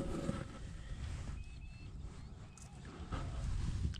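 A fish splashes into shallow water.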